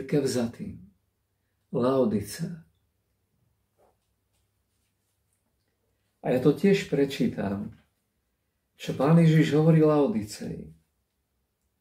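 An older man speaks calmly and close to a microphone, in short bursts with pauses.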